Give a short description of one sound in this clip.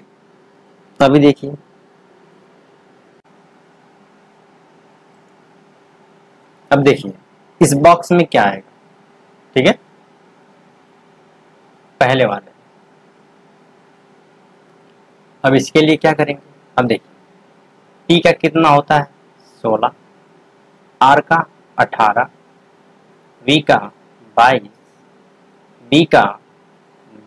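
A young man speaks calmly into a close microphone in short bursts with pauses.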